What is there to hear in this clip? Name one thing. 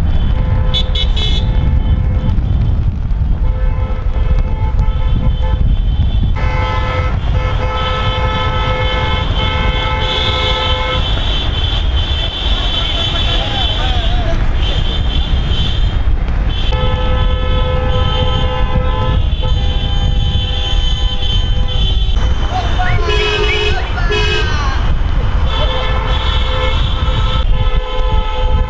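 Car horns honk in long, repeated blasts.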